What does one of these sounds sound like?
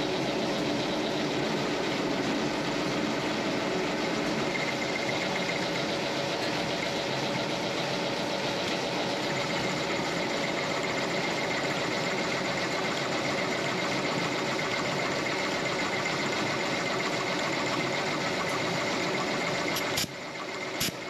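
A drill bit grinds steadily through metal.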